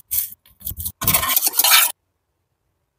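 A whisk stirs liquid in a bowl.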